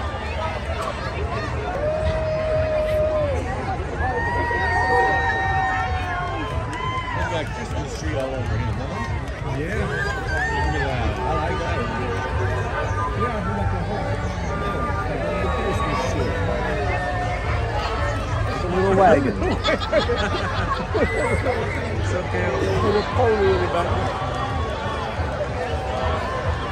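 A crowd of men, women and children chatters and calls out nearby outdoors.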